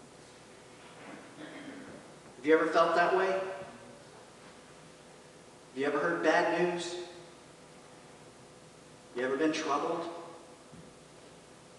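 A man speaks calmly through a microphone in an echoing hall, with long pauses.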